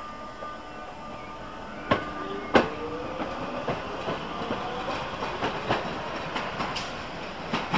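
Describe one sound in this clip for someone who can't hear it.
A tram hums and rolls away along the rails.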